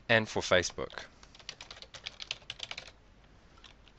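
Keys clatter as someone types quickly on a keyboard.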